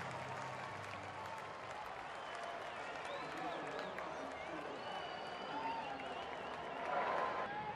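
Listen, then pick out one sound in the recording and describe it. Fans whistle and shout across a stadium.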